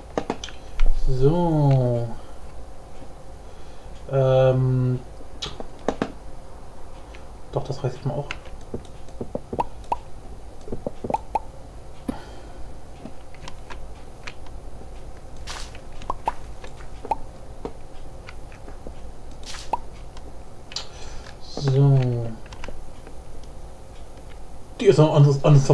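A young man speaks in short bursts, close to a microphone.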